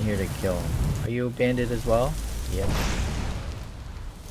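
A fire spell whooshes and crackles.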